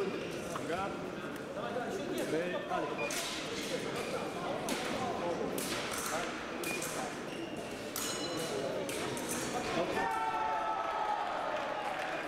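A man calls out commands in a large echoing hall.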